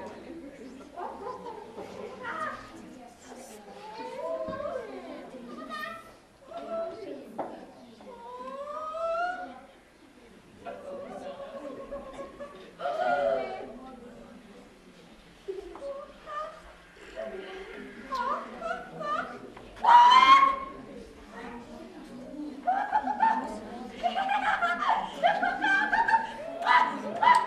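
A man speaks in high, squeaky cartoon voices with lively animation, close by.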